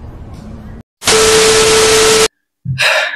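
Loud television static hisses.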